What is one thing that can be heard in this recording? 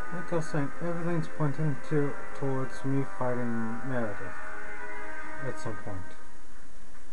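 Orchestral game music plays through a television speaker and stops.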